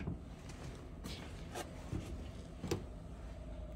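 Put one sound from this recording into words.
Car parts knock and clatter as they are handled.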